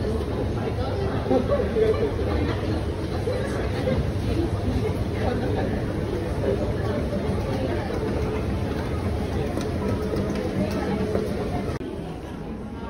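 An escalator hums and rattles steadily as it runs.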